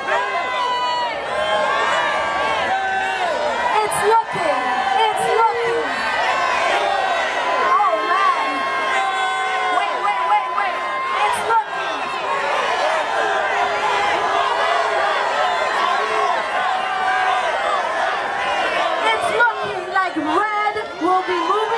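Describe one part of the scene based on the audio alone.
A crowd cheers and shouts loudly all around.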